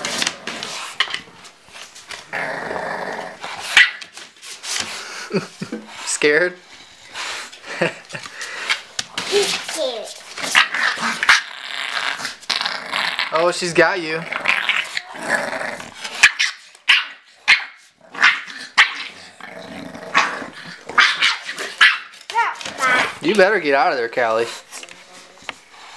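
A bulldog snorts and grunts close by.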